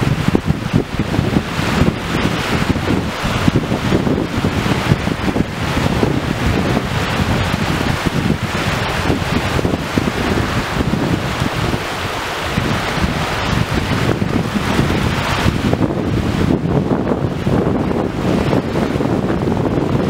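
Small waves break and wash onto a shore.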